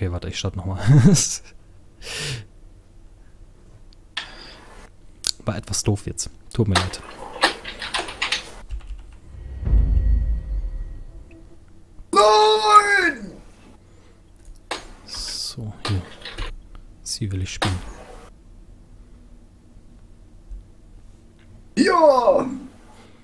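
A man talks casually into a close microphone, in bursts with pauses.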